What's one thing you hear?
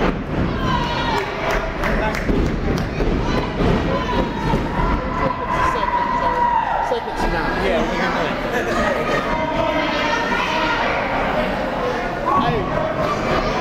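Bodies thump onto a wrestling ring mat.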